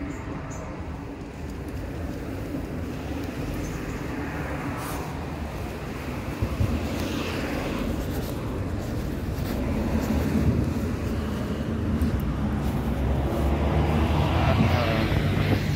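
Wind blusters steadily outdoors.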